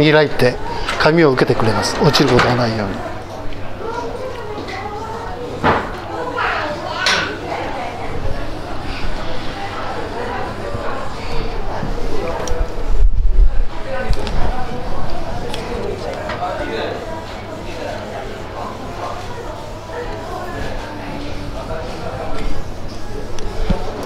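A printer whirs and clatters as it feeds and prints a page.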